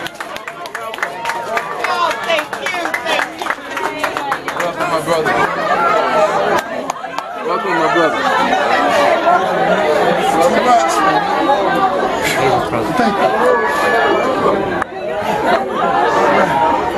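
A crowd of men and women chatter and call out excitedly.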